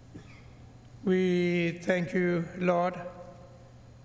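A man speaks into a microphone, heard over loudspeakers in a large echoing hall.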